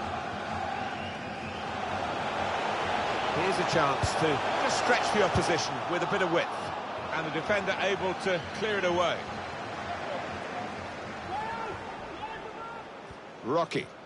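A large crowd murmurs and roars steadily in a big open stadium.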